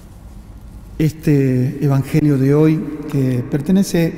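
A middle-aged man speaks slowly and solemnly through a microphone in a large echoing hall.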